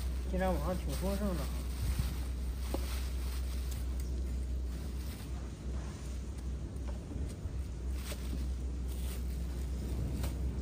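A plastic bag rustles and crinkles in someone's hands.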